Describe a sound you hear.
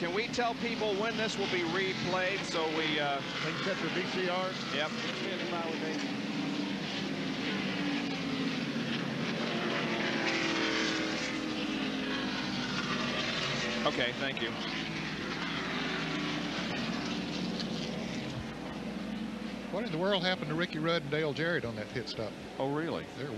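Race car engines rise and fall in pitch as they pass by.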